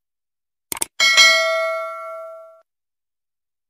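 A bell chimes and slowly rings out.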